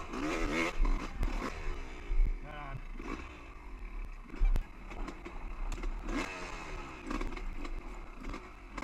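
A dirt bike engine revs and sputters up close.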